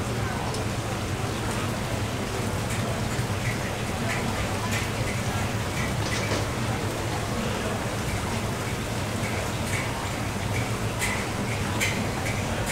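Metal utensils clink against metal trays.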